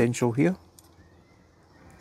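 Garden shears snip a plant stem.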